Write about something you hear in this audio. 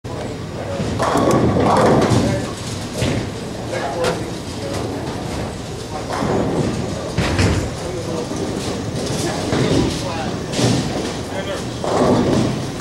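Bowling balls rumble along wooden lanes in a large echoing hall.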